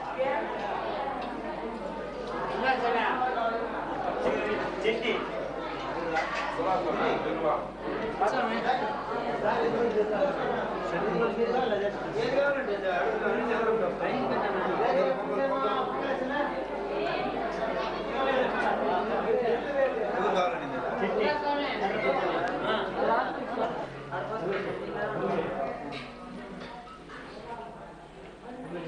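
Many men talk over one another nearby.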